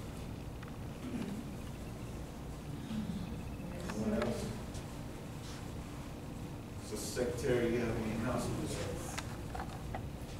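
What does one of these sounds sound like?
A man speaks slowly and calmly into a microphone in an echoing hall.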